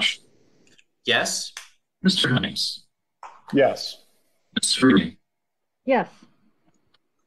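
A middle-aged man speaks calmly over an online call in short phrases.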